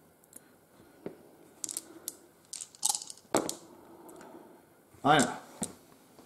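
Dice clatter into a padded tray.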